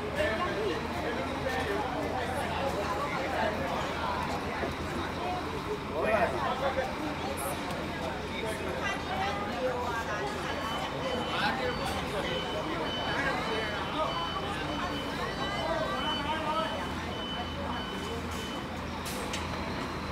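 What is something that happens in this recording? A bus engine idles with a low steady rumble.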